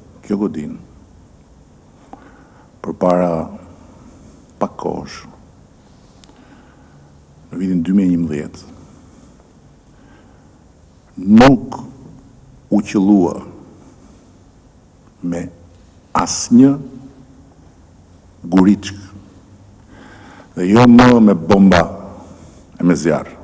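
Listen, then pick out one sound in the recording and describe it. A middle-aged man speaks calmly into a microphone in short, halting phrases.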